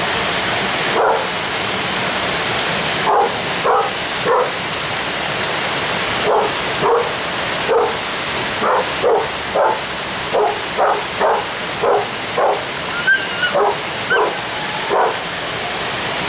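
A dog barks repeatedly.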